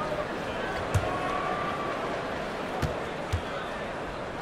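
A basketball bounces on a hardwood floor a few times.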